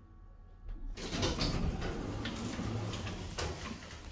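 Elevator doors rumble as they slide open.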